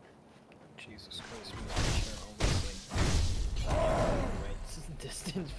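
Heavy blows and thuds crash during a fight.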